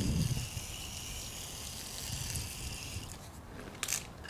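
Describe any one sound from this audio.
An electric polisher whirs steadily and then stops.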